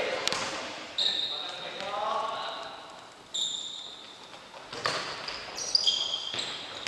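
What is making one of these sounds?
Sneakers squeak sharply on a hard floor in an echoing hall.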